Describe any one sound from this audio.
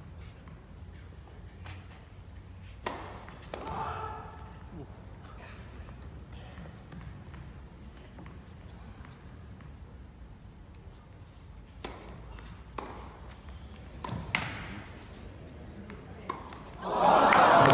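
A tennis ball is struck back and forth with sharp pops in a large echoing arena.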